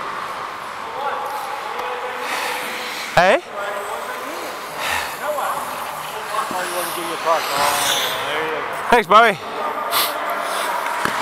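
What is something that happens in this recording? Men shout and call out across the echoing rink.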